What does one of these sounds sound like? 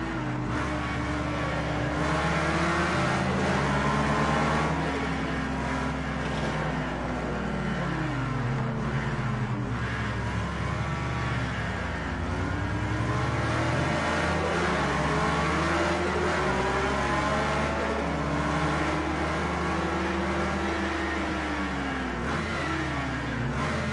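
Other racing car engines whine nearby.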